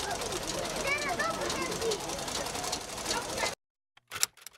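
A sewing machine whirs and clatters.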